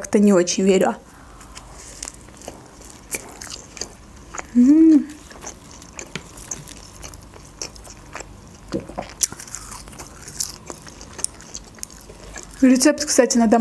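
Crisp food crunches and crackles as a young woman chews.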